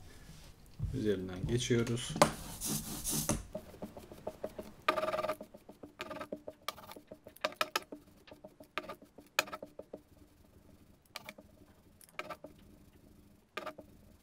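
A sponge dabs repeatedly against paper with soft taps.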